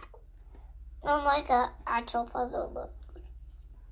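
A young girl speaks nearby.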